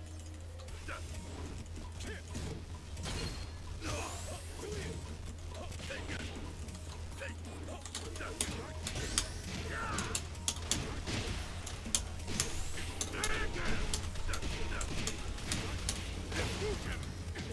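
Punches and kicks land with sharp thuds and smacks.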